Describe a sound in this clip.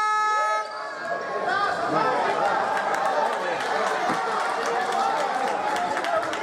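A crowd of spectators shouts and chatters in an echoing hall.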